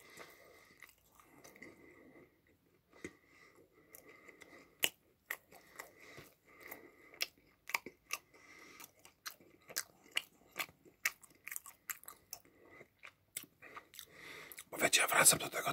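A young man chews crunchy food noisily, close to the microphone.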